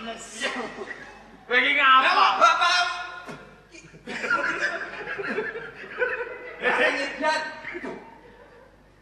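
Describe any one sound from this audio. A man speaks loudly in a theatrical, sing-song voice on a stage.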